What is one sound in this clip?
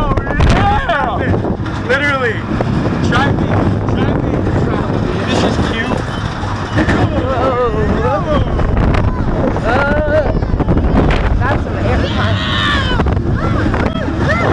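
Young men scream and shout with excitement close by.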